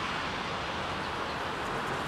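Bicycle tyres hiss on wet pavement.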